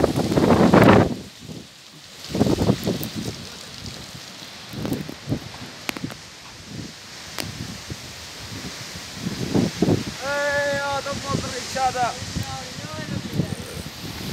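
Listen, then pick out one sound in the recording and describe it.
Blowing sand hisses across the ground.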